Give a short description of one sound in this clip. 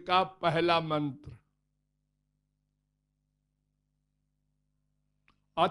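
An elderly man speaks slowly and calmly into a microphone, close by.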